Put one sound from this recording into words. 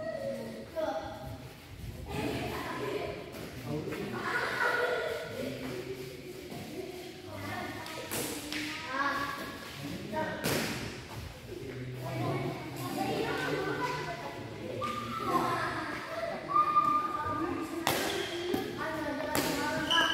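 Several men talk and call out in a large echoing hall.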